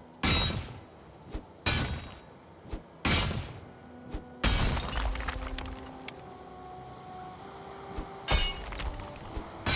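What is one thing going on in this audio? A pickaxe strikes rock with heavy crunching blows.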